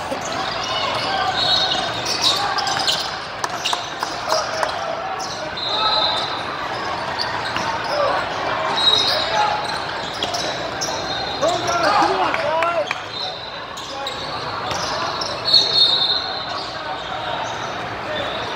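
Players call out to each other, echoing in a large hall.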